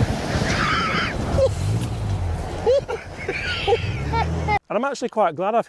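Men laugh loudly outdoors.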